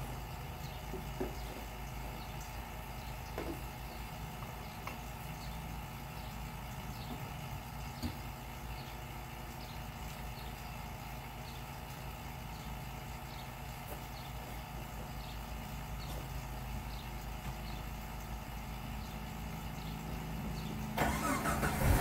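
An engine idles nearby with a steady low rumble.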